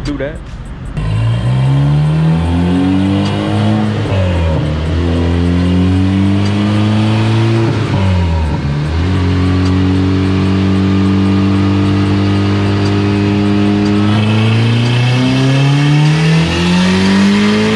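A car engine revs up and down loudly, again and again.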